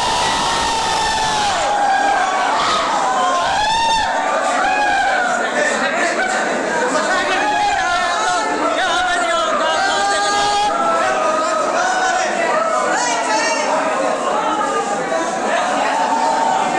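A crowd of young men chatter and call out loudly all around.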